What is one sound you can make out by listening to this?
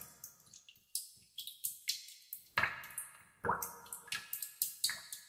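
Water drops fall and plop into still water, one after another.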